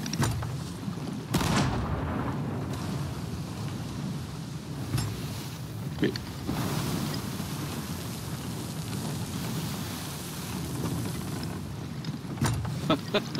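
Rough waves crash and roar around a wooden ship.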